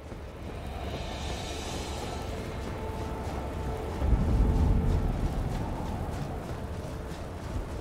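Armoured footsteps crunch steadily over stone and grass.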